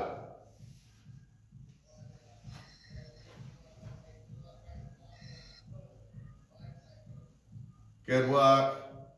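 Sneakers thud softly on a mat.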